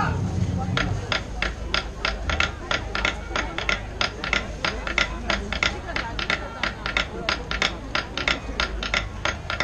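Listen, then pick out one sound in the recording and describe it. A crowd claps along in a steady rhythm.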